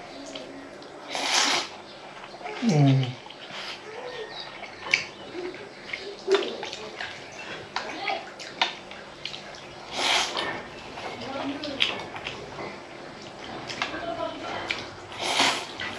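A man slurps noodles loudly.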